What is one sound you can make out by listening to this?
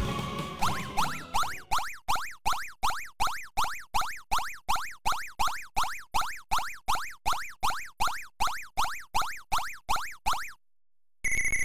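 Quick electronic blips chirp upward in a fast, even rhythm.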